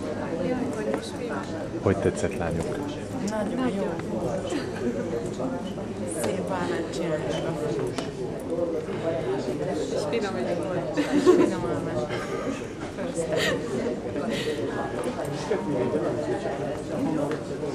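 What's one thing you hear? Young women talk and laugh close by, with animation.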